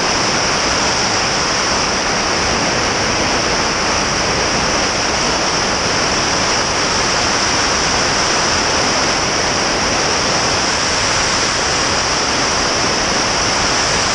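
A small plane's propeller engine drones loudly and steadily.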